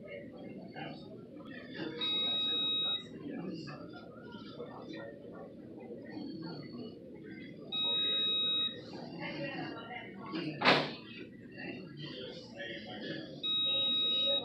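An elderly woman talks quietly nearby.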